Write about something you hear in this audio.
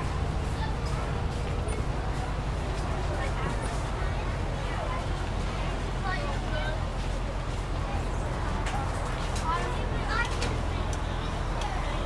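A school bus engine rumbles low as the bus drives.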